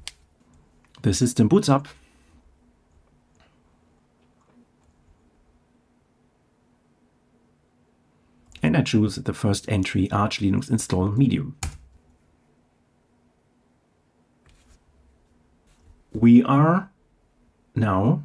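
A middle-aged man speaks calmly and close to a microphone, in short bursts.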